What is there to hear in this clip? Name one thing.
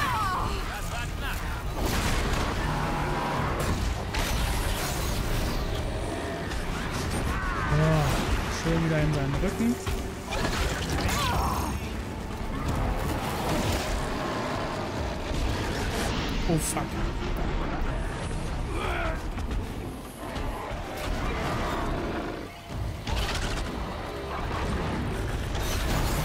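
A large metal machine stomps and roars nearby.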